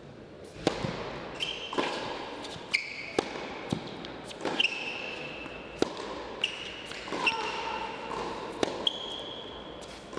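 Tennis shoes squeak on the court.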